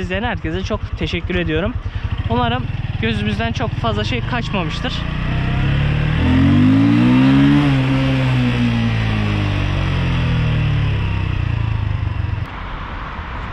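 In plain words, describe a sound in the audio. A motorcycle engine hums and its pitch rises and falls as the bike rides.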